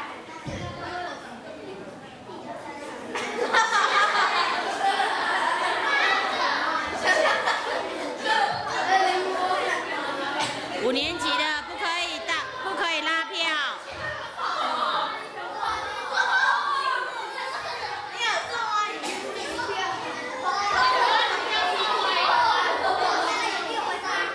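Many children chatter and call out loudly.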